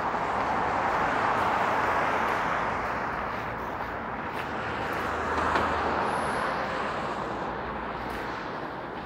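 Cars swish past on a wet road nearby and fade into the distance.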